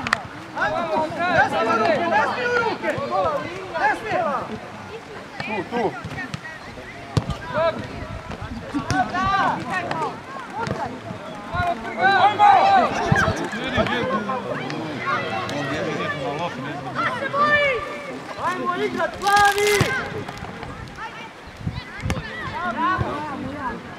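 A ball is kicked with dull thumps.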